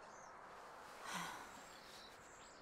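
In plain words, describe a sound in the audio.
A woman speaks briefly in a strained voice, nearby.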